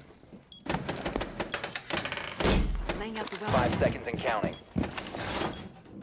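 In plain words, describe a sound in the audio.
A wooden barricade is knocked into place with a few clattering thuds.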